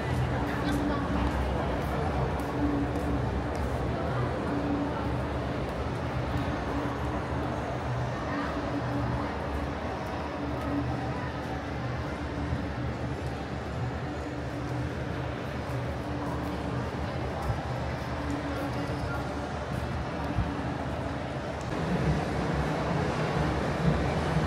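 A steady hum of city noise fills an open street.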